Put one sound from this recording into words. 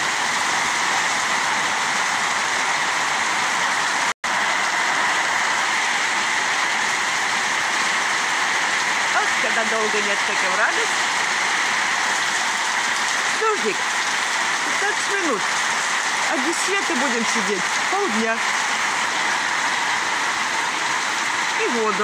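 Heavy rain pours down steadily outdoors, hissing on leaves and pattering on the ground.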